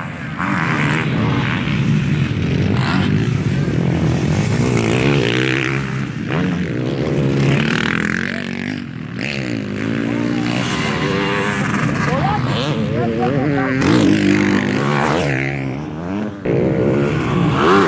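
Dirt bike engines roar and rev loudly, rising and falling in pitch as they race past.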